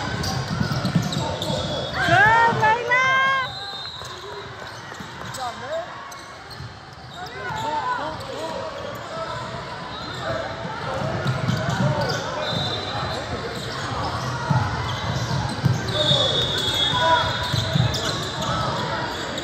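Young girls call out to each other across an echoing gym.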